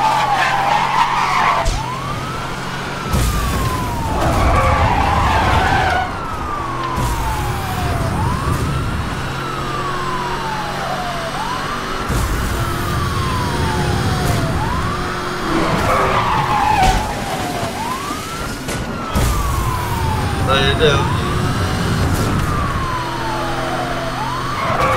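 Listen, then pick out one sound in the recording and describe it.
A car engine roars and revs at high speed.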